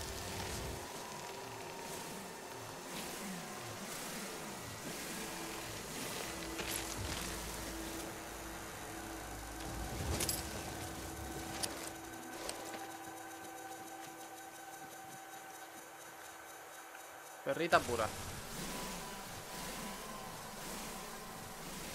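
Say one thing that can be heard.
A mining laser hums steadily.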